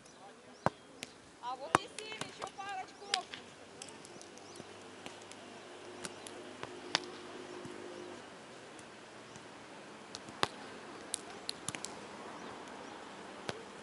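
A volleyball thuds sharply off players' hands.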